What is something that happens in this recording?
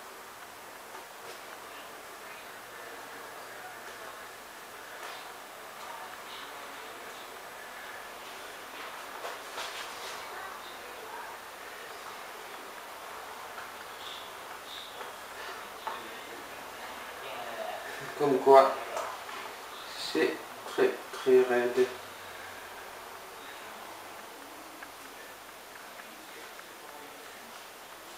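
Hands press and fold a raw sole fillet on a wooden cutting board.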